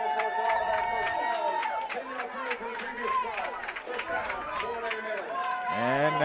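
A crowd cheers in an open stadium.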